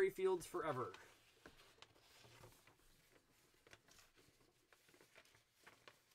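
Paper rustles as pages are turned.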